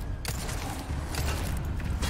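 A gun fires a shot.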